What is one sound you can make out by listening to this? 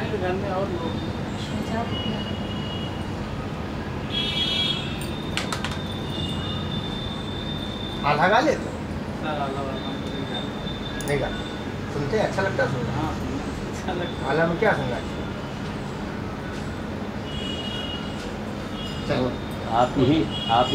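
Several women talk nearby in a small group.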